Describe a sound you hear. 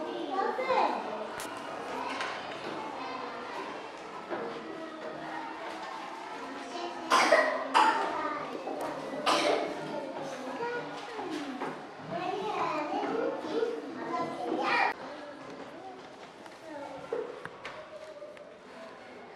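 Young children chatter and call out nearby in a room.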